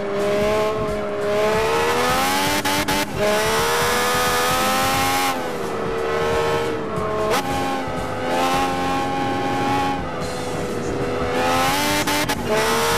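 A racing car engine screams at high revs, its pitch rising and dropping sharply with each gear change.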